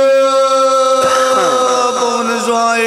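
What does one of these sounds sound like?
Another man sings with strong vibrato through a microphone.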